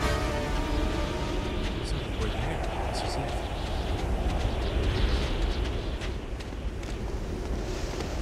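Wind roars steadily in a sandstorm.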